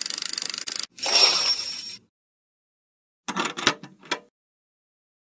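An electronic slot game plays a short chime for a win.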